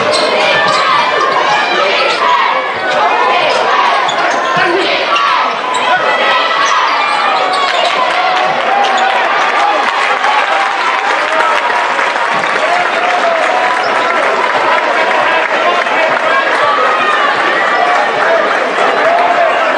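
A large indoor crowd cheers and chatters loudly, echoing through a big hall.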